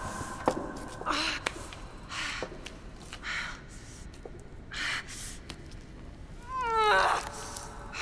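A young woman breathes heavily and moans close by.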